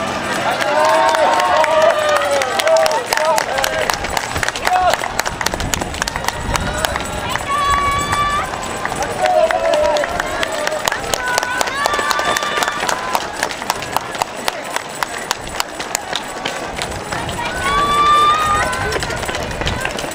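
Spectators clap their hands steadily close by.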